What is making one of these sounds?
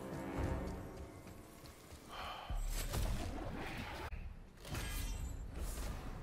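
Footsteps crunch on snowy ground.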